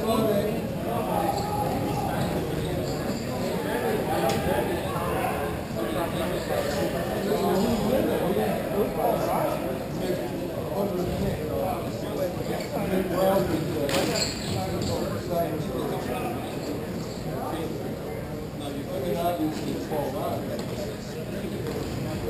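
Roller skate wheels roll and scrape on a hard floor in a large echoing hall.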